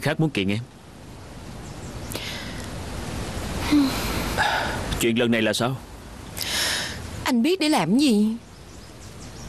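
A young woman speaks softly and hesitantly.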